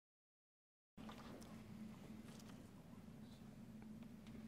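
A piano plays softly.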